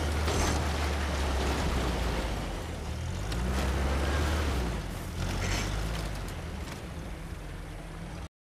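Tyres crunch over dirt and grass.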